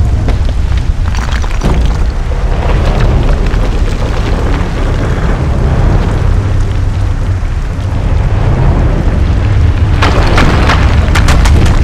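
Heavy stone grinds and rumbles deeply.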